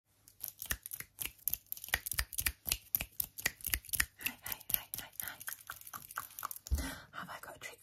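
Metal rings clink and tap rapidly close by.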